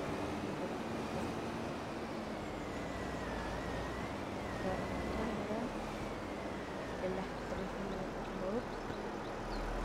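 A heavy diesel engine rumbles steadily.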